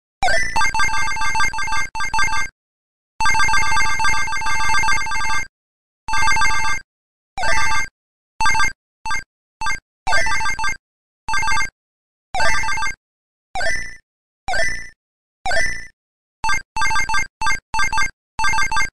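Upbeat electronic game music plays in short bursts that keep cutting in and out.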